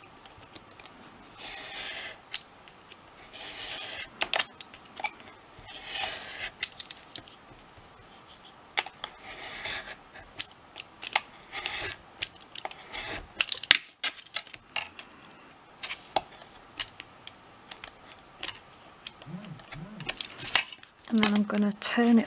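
A metal ruler clicks and taps on a cutting mat.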